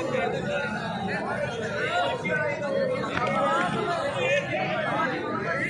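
A crowd of onlookers murmurs in the open air.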